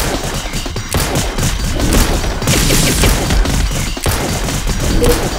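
Electronic game music plays.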